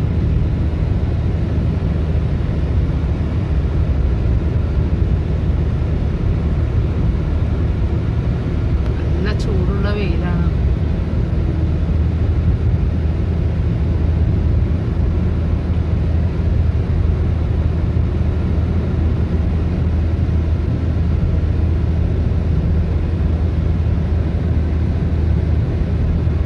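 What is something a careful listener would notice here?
A car drives fast, with a steady low rumble of engine and tyres heard from inside.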